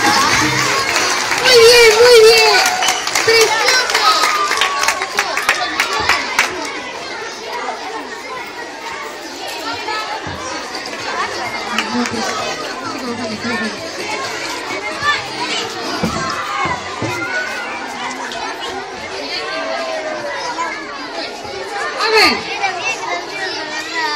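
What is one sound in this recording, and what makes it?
A crowd of young children chatters and shouts outdoors.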